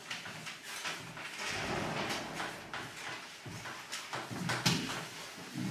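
Chalk taps and scrapes on a board in quick strokes.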